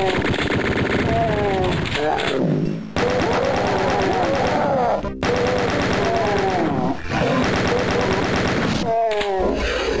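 A man talks through a headset microphone.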